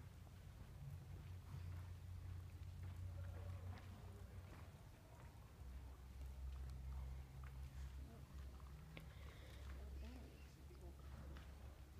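Horse hooves thud softly on dirt in a steady trotting rhythm.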